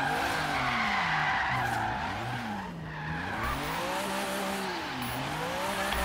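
Tyres screech while a car drifts.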